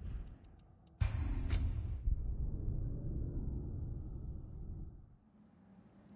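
A deep, rumbling swell of game music plays, then fades.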